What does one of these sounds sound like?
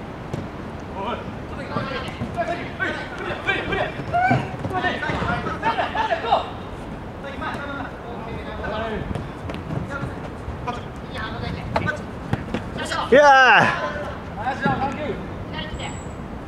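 Young men shout and call to each other outdoors during a game.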